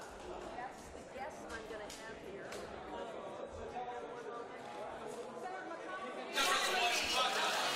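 Footsteps echo on a hard floor in a large hall.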